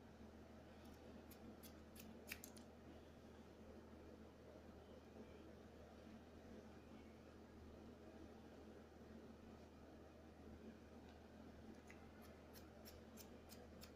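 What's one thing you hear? Scissors snip through hair in quick, crisp clicks.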